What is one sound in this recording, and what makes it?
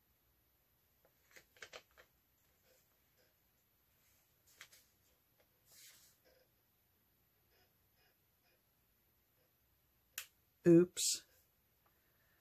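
Paper rustles softly as it is peeled slowly away from wet paint.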